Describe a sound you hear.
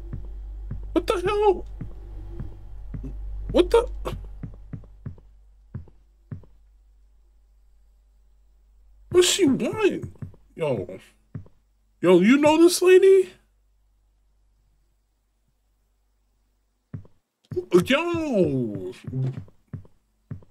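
A man talks into a microphone with animation, close by.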